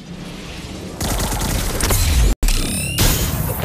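A sword slashes with a whoosh in a game.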